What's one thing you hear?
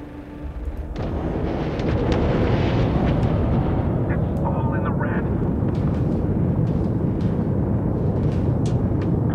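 Spaceship guns fire with a loud, steady rumbling roar.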